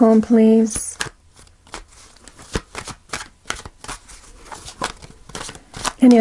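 Playing cards riffle and slap softly as they are shuffled by hand, close by.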